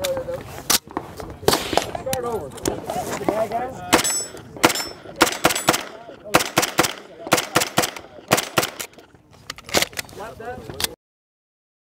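Gunshots crack one after another, outdoors.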